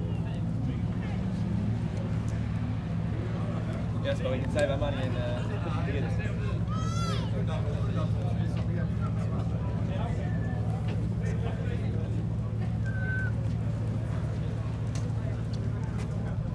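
A sports car engine idles with a steady, deep rumble.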